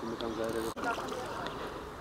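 Water splashes as a net is pulled from a pond.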